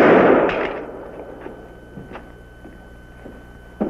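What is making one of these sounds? Footsteps walk away on a hard floor.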